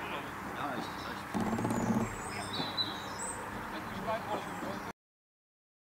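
Men talk calmly outdoors, a few steps away.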